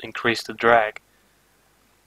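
A young man speaks briefly into a close microphone.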